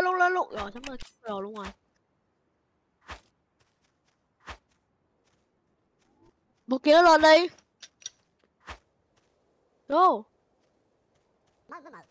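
A sword swishes and strikes in quick blows.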